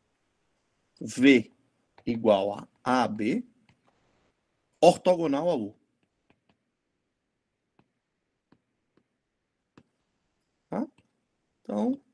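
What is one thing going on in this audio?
A young man speaks calmly through an online call, in short phrases with pauses.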